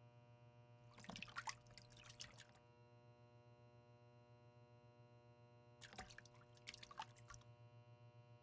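Small objects clink and rustle softly as a man handles them.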